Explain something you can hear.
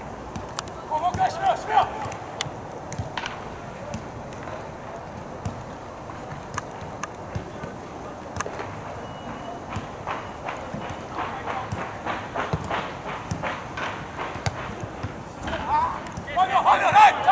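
Young men shout across an open outdoor field.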